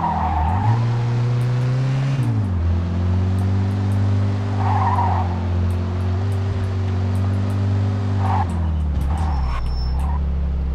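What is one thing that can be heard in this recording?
Car tyres hiss on a wet road.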